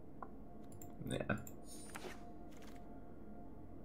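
Game cards swish and flip into place.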